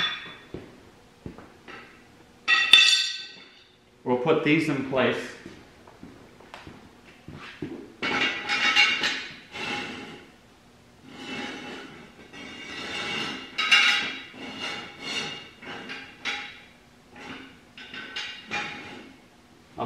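Metal jack stands clank on a concrete floor.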